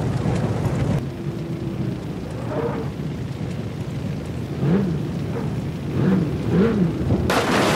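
A car engine approaches, revving up and down.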